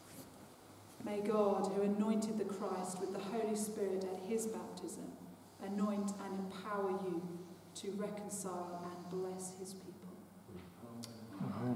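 A woman speaks slowly and solemnly in an echoing hall.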